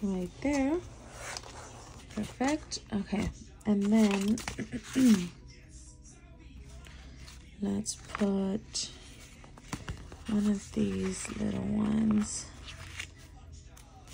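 Paper rustles and crinkles as sheets are handled.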